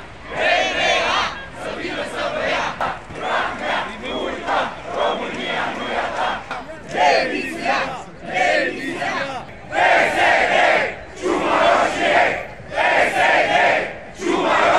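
A large crowd chants loudly in rhythmic bursts outdoors.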